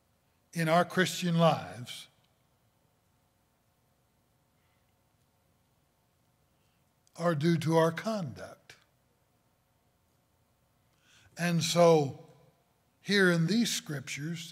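An older man speaks emphatically into a microphone, in short bursts with long pauses.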